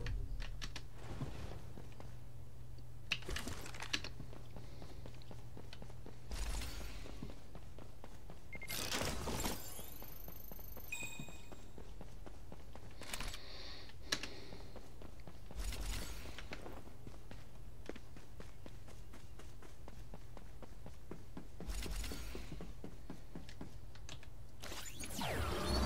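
Footsteps patter quickly across hard ground.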